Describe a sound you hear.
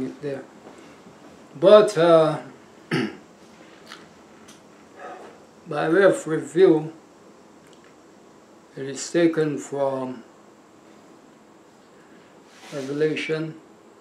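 An elderly man speaks calmly and slowly into a nearby microphone, with long pauses.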